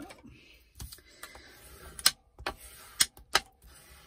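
A bone folder scores and creases paper with sharp scraping sounds.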